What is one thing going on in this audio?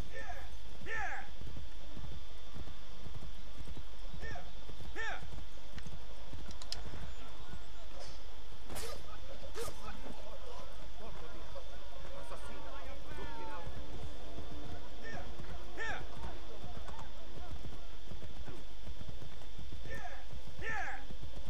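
A horse's hooves trot on a dirt path.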